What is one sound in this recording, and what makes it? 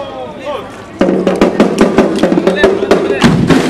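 A second marching band plays horns.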